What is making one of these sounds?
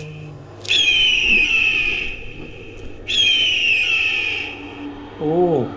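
An eagle screeches loudly, twice.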